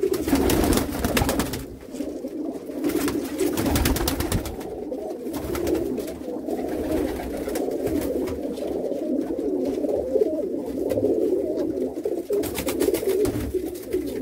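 Pigeons coo in low, throaty warbles throughout.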